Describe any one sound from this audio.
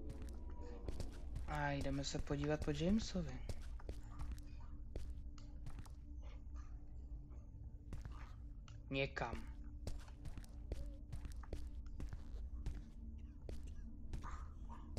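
Footsteps thud steadily on hard floor and wooden boards.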